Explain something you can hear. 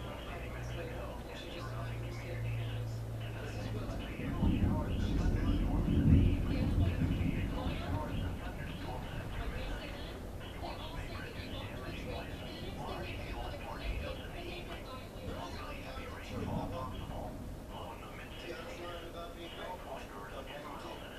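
Raindrops patter steadily on a window.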